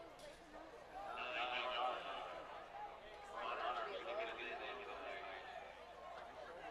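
A crowd cheers and shouts outdoors in the distance.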